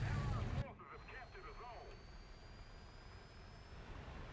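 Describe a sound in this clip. Aircraft engines whine with a slowly rising pitch.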